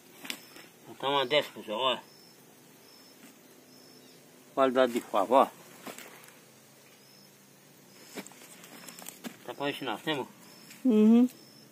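A man speaks calmly, close by, in short bursts.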